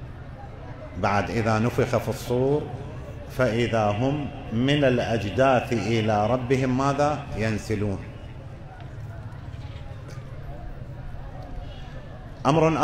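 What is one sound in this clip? An elderly man speaks with feeling through a microphone and loudspeakers.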